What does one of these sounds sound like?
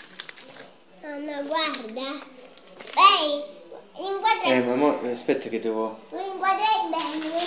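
A young child talks with animation close by.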